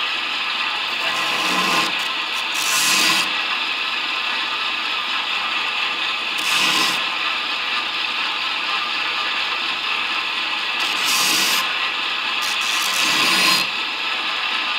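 A metal blade grinds against a belt grinder in short bursts.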